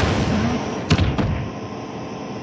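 An explosion bursts with a loud whoosh.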